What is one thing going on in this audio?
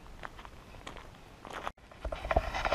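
Footsteps crunch on a gravel track.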